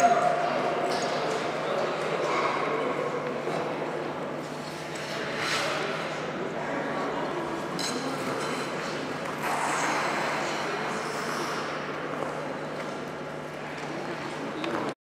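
A crowd applauds and cheers in a large echoing rink.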